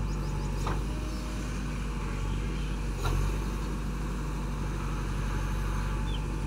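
A diesel engine of a backhoe loader rumbles steadily close by.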